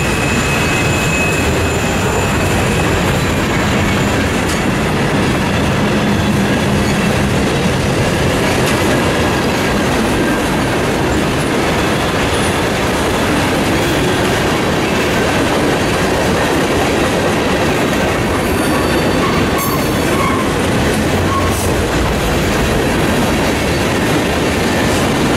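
A freight train rolls past close by, its wheels rumbling and clattering on the rails.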